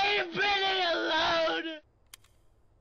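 A young woman sobs and wails loudly, close by.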